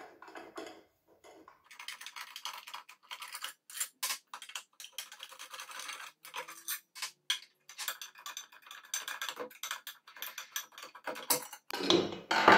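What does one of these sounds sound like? Small metal tools tick and scrape against an engine casing.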